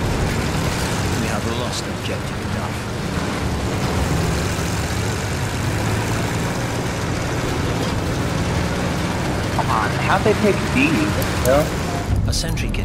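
A heavy engine rumbles steadily.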